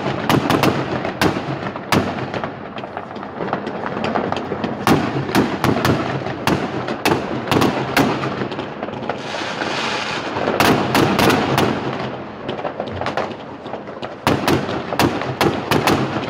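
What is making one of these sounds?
Fireworks bang and crackle nearby, one burst after another.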